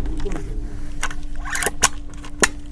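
The bolt of an air rifle clicks as it is cycled.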